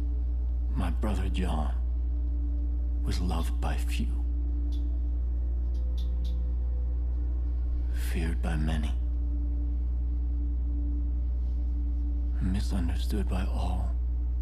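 A man speaks slowly and menacingly, close by, in short phrases.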